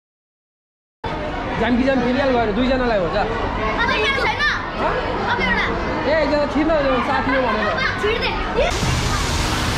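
Children chatter excitedly close by.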